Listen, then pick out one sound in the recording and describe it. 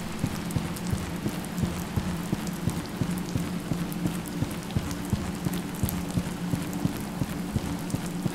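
Footsteps thud steadily at a walking pace.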